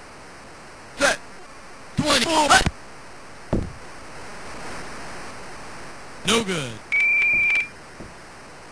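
Video game sound effects play in short bursts.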